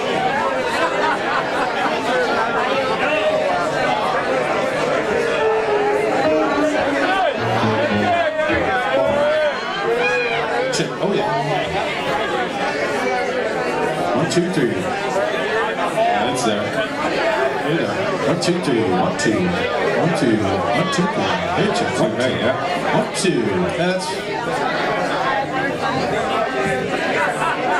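A live band plays acoustic guitars, drums and keyboard.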